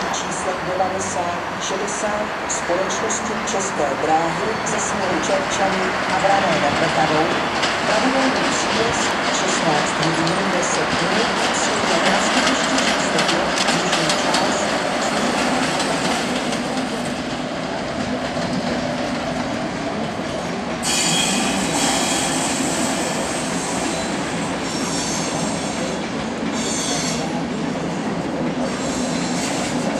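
Train wheels click and squeal over rail joints.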